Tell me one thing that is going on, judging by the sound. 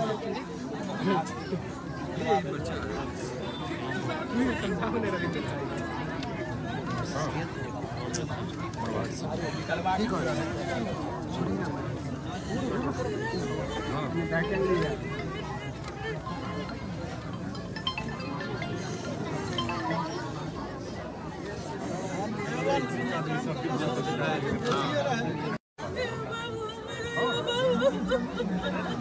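A woman cries and wails loudly, close by.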